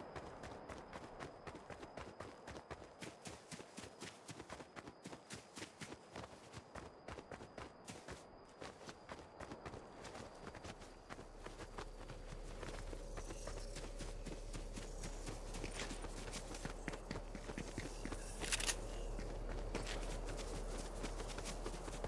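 Quick footsteps patter on grass as a game character runs.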